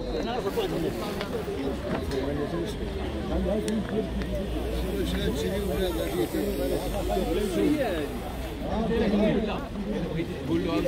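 A crowd of men talk over each other outdoors.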